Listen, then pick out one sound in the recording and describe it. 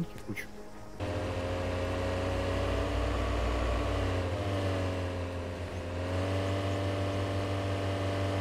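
A car engine hums steadily, rising and falling slightly as the car drives.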